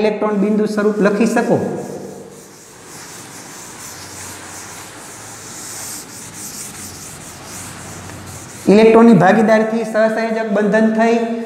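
An elderly man speaks steadily, close by, as if teaching.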